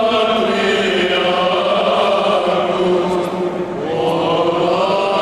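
Men chant together in a sustained, echoing chorus.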